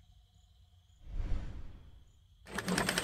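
A heavy metal lever is pulled with a clunk.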